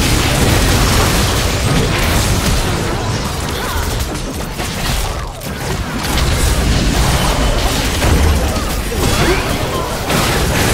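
Spell effects crackle and burst in a game battle.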